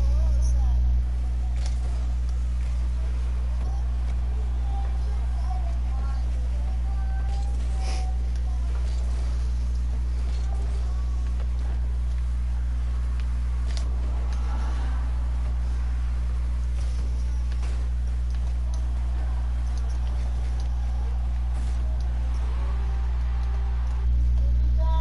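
A game car's engine hums and boosts.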